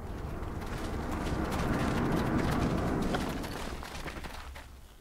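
Many footsteps shuffle and tramp on packed earth.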